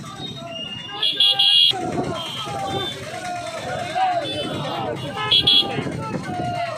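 Horns honk repeatedly.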